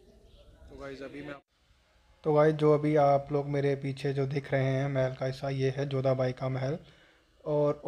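A young man talks calmly and close up, outdoors.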